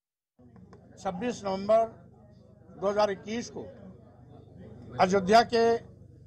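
A man speaks calmly into a microphone at close range.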